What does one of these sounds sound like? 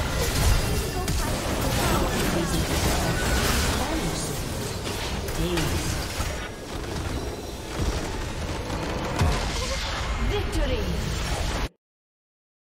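Video game spells whoosh and crackle in rapid bursts.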